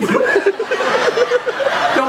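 A young boy laughs.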